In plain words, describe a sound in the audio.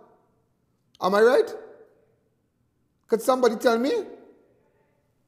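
A man speaks with animation into a microphone in a room with a strong echo.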